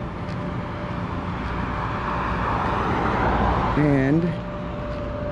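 A car drives past on a nearby road, growing louder and then fading.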